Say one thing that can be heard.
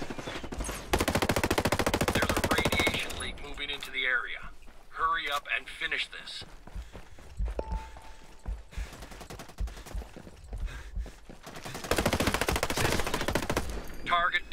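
A rifle fires in rapid bursts of gunfire.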